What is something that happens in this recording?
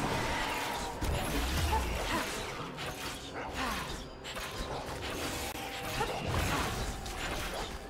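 Heavy impacts thud as a large monster is struck.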